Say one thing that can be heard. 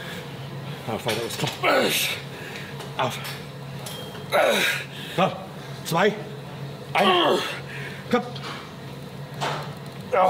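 A young man grunts with effort.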